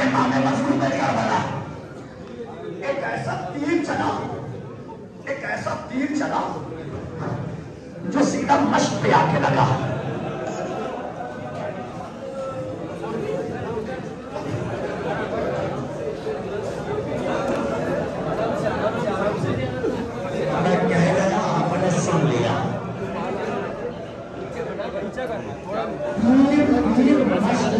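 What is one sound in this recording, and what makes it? A dense crowd of men chant and call out loudly in an echoing hall.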